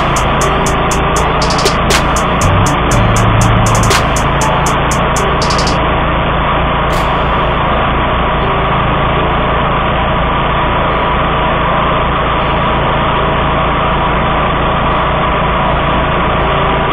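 Tall grass and weeds swish and snap against a mower deck.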